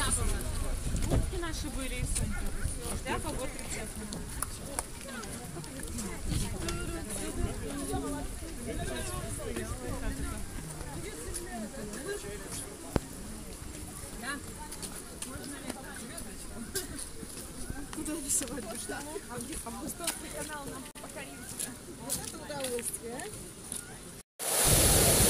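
Several adults talk nearby outdoors.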